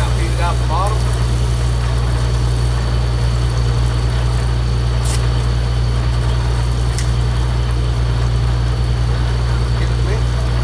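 A machine engine hums steadily outdoors.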